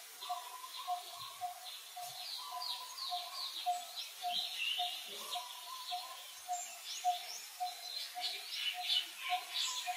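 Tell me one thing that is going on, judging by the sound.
A baby monkey squeaks in short high chirps.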